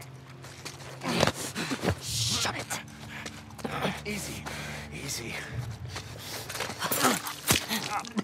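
A scuffle breaks out, with heavy thuds and blows.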